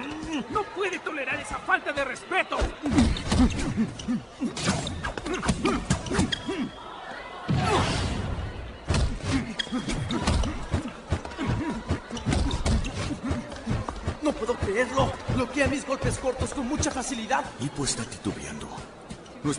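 A man shouts in an excited voice.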